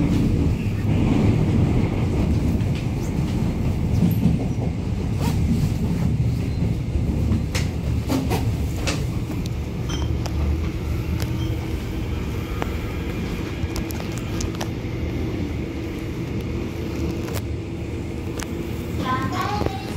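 Train wheels click and rattle over rail joints.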